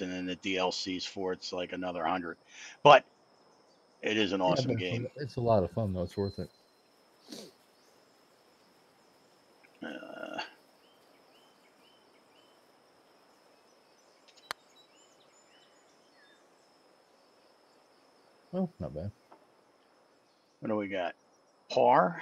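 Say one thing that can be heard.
A middle-aged man talks casually into a headset microphone, heard close up.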